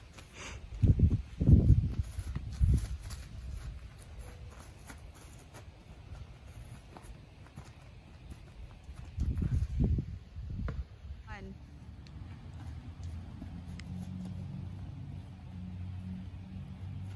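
Feet shuffle quickly on grass.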